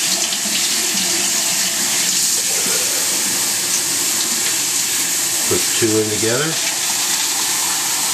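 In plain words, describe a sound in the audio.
Water runs from a tap into a plastic cup.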